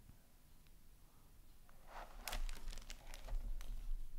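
A book is set down on a wooden table with a light knock.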